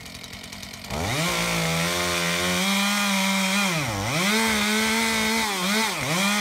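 A chainsaw cuts into a log under strain, its engine rising and dipping.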